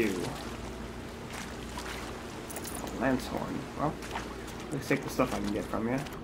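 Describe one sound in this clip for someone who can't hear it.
Water splashes under running footsteps.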